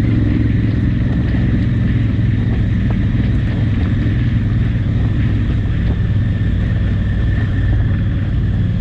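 Tyres crunch and rattle over loose rocks.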